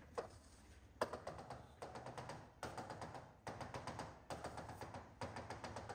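A marker taps and squeaks in short dashes on a board.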